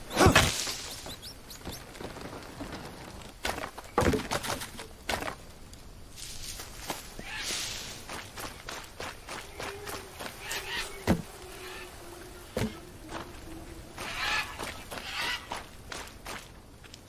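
Leaves rustle as someone pushes through dense plants.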